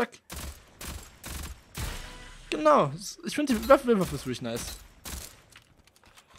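Gunshots fire in short, rapid bursts.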